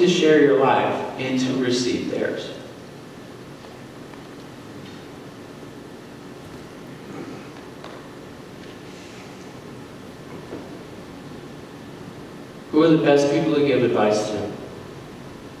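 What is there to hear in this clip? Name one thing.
A man speaks through a microphone in a large echoing hall, in short bursts with pauses.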